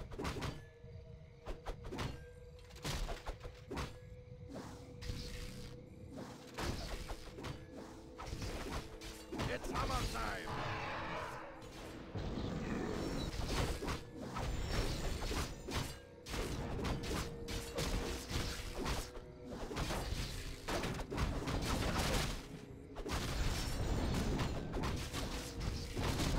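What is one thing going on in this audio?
Weapons clash and strike repeatedly in a fast battle.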